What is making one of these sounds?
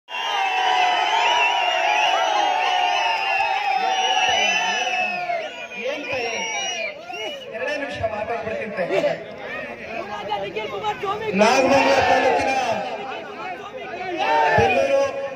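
A young man speaks loudly and forcefully into a microphone, amplified through loudspeakers outdoors.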